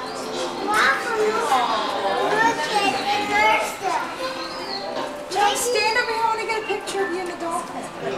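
Adult visitors chat and murmur nearby in an echoing room.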